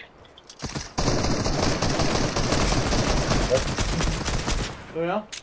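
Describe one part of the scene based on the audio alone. A video game rifle fires in a rapid burst.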